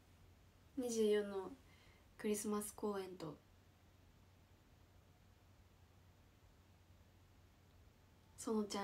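A young woman speaks calmly and softly close to a microphone, in short bursts with pauses.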